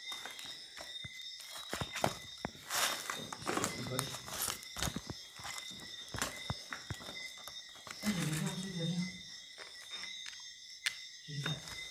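Papers rustle as they are handled.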